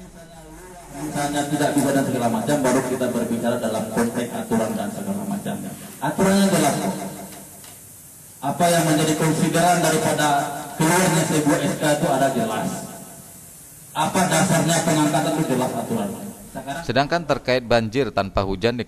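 A man speaks forcefully through a microphone with pauses.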